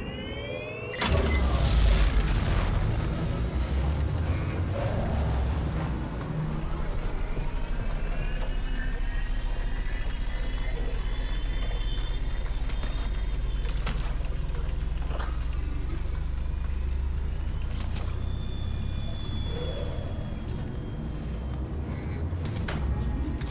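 A starship's engines rumble low and steady.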